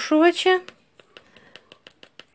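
A spoon taps lightly against a bowl.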